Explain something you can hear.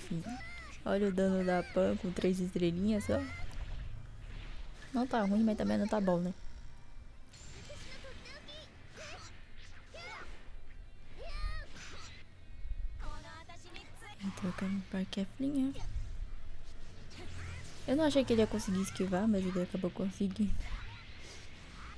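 Energy blasts and hits crash and whoosh in quick bursts.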